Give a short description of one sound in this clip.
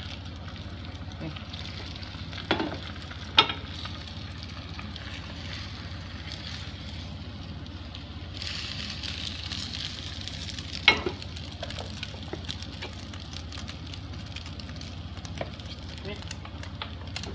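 Egg sizzles in a hot pan.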